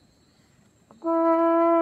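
A horn plays a steady, loud note.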